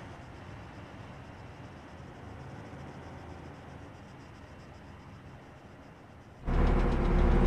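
Tank engines rumble in the distance.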